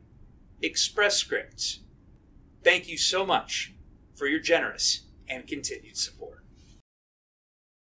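A young man speaks calmly and clearly, close by.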